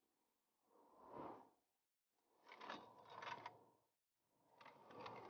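Sand scrapes and rustles as a man crawls over it.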